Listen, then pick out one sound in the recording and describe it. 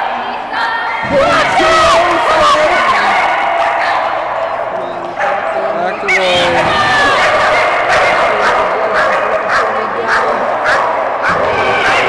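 A crowd of men and women chatter and shout to dogs in an echoing hall.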